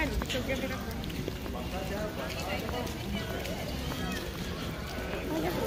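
A crowd of men and women chat nearby outdoors.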